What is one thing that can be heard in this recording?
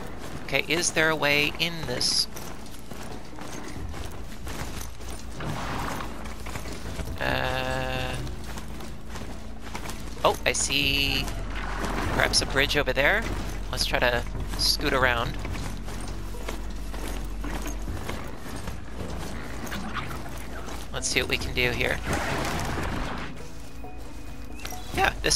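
The metal hooves of a galloping robotic mount thud over the ground.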